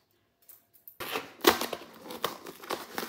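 A cardboard box lid is lifted off with a soft scrape.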